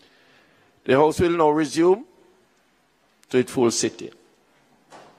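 A man speaks loudly and clearly into a microphone.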